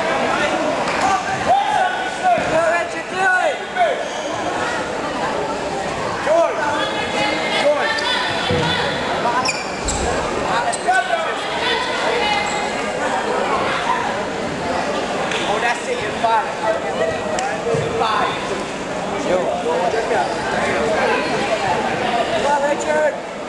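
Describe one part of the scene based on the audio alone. Wrestling shoes squeak and scuff on a mat.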